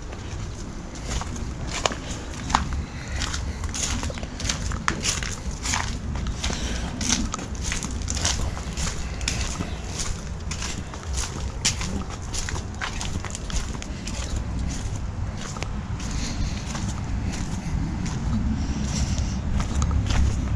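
Footsteps crunch over dry leaves and pavement at a steady walking pace.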